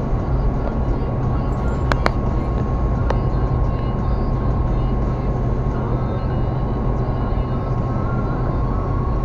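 Tyres roll steadily on a highway, heard from inside a car.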